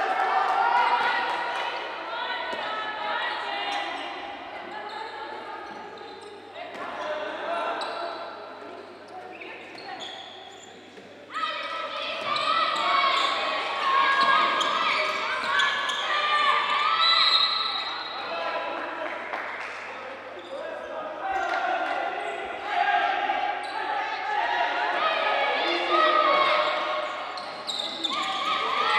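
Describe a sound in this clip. A handball bounces on a wooden court floor.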